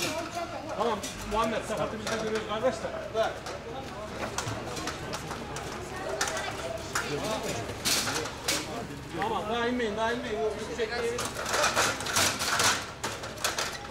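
A metal ladder creaks and rattles as someone climbs.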